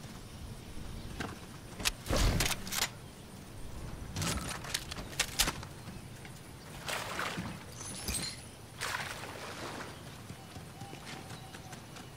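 Footsteps thud and patter across grass, metal and dirt.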